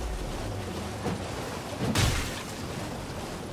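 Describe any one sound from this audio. Water splashes loudly as a horse gallops through shallows.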